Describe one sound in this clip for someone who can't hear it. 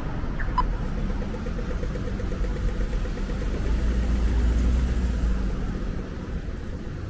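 A car engine hums nearby and drives away.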